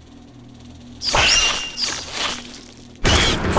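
A giant spider screeches.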